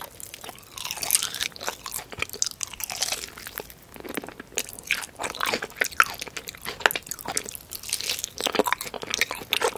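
A woman bites and crunches crispy fried chicken close to a microphone.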